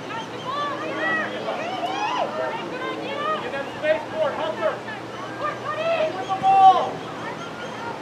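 Young women call out to each other from across an open field.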